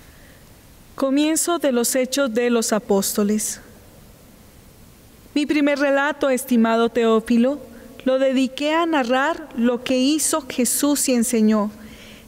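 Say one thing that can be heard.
A woman reads out calmly through a microphone in an echoing hall.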